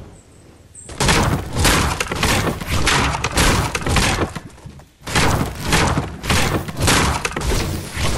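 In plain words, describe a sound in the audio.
A pickaxe chops repeatedly at wood.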